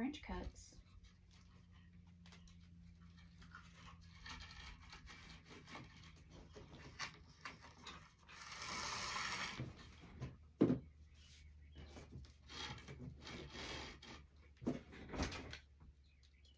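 Paper rustles and crinkles as it is handled.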